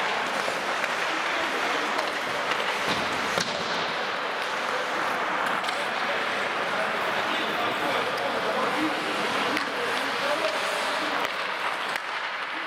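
Players shout to each other across an echoing rink.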